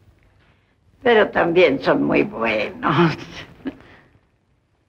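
A young woman laughs and speaks cheerfully.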